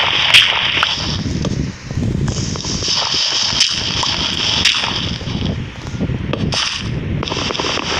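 Dirt blocks crunch and break as they are dug out.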